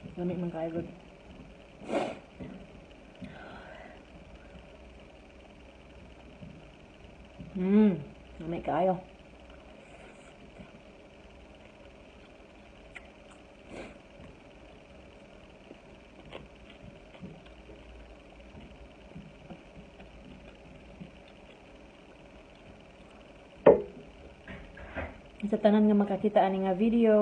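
A middle-aged woman speaks calmly close to the microphone.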